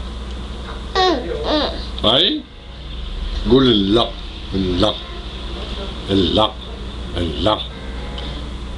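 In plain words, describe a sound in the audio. A young woman speaks playfully up close.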